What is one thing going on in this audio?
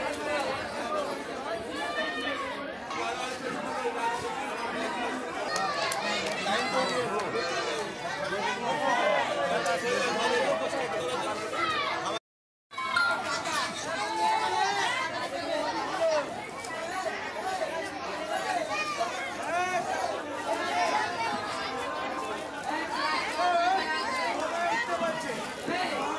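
Several adults and children talk and call out over one another nearby.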